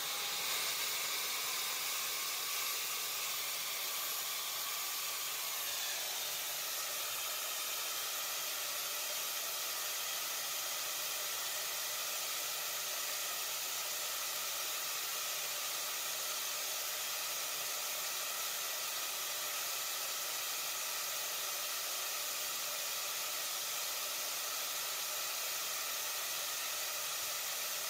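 A suction fan whirs steadily and loudly.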